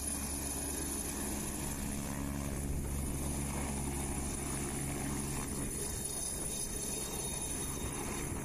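Helicopter rotor blades whirl and thump.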